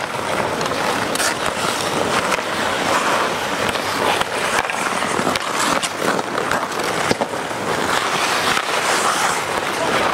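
Ice skates scrape and hiss across an outdoor rink.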